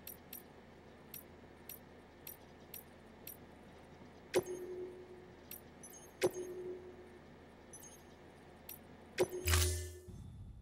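Short electronic menu clicks tick at an uneven pace, with a few louder chimes.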